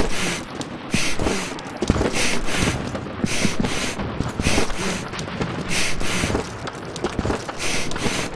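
Footsteps tap quickly and steadily on hard pavement.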